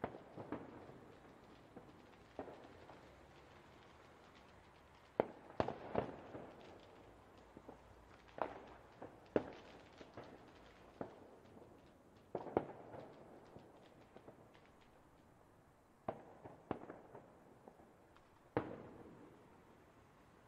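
Fireworks bang and boom in bursts, echoing and crackling as they fade.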